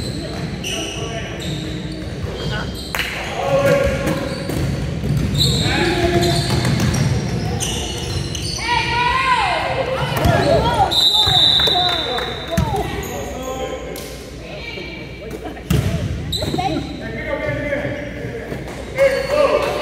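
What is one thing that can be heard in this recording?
A crowd of young players and onlookers chatter and shout in a large echoing gym.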